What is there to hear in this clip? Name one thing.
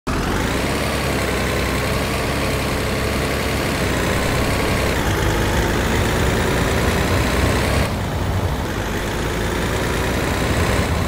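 A heavy truck engine drones steadily as it drives along a road.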